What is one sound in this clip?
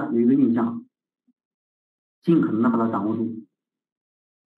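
A man lectures calmly into a close microphone.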